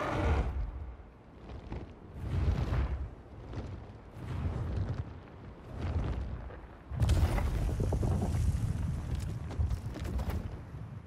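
Huge wings beat with deep, rhythmic whooshes.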